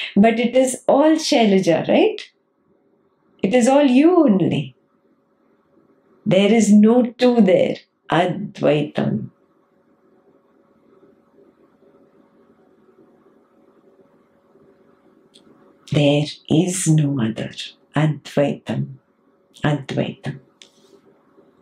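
A young woman speaks calmly and expressively, close to a microphone.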